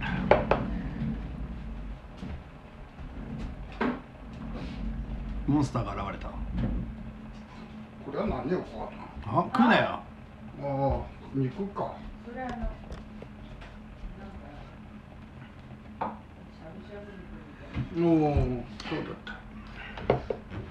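An elderly man talks casually nearby.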